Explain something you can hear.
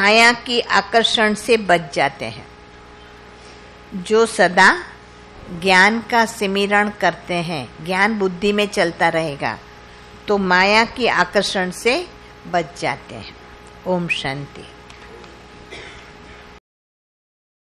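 An elderly woman speaks calmly into a microphone, with pauses.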